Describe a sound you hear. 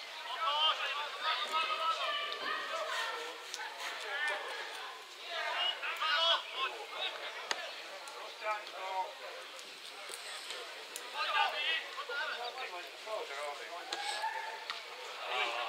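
Young male players shout to each other across an open field outdoors.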